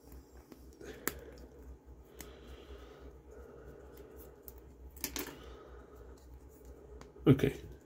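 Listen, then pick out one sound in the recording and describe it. Plastic pieces snap apart.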